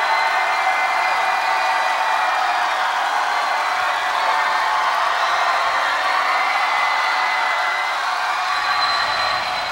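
Young women sing in unison through microphones.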